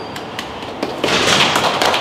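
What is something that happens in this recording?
People applaud with clapping hands.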